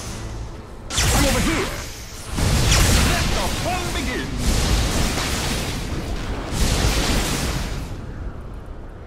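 Electric zaps crackle and snap in short bursts.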